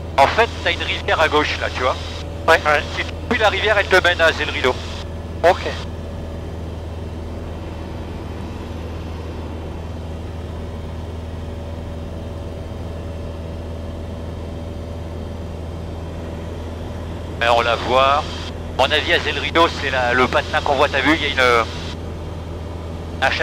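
An aircraft engine drones steadily throughout.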